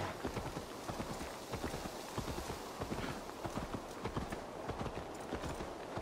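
Horse hooves thud rapidly on a dirt path.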